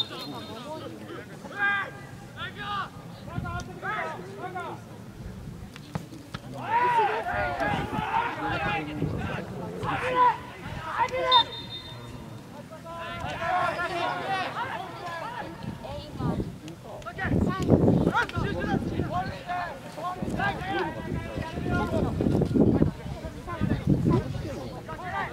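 Young players shout and call out across an open outdoor field.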